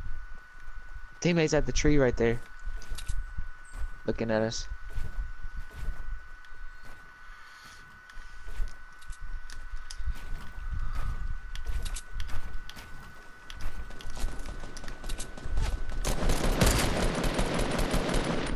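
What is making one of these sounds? Footsteps run over grass and wooden steps.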